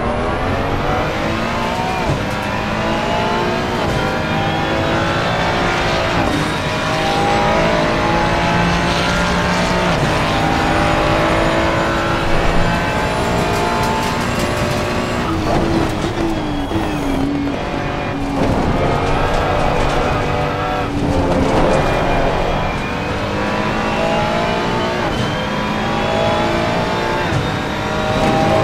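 A racing car engine roars loudly, rising in pitch through each gear and dropping sharply at each shift.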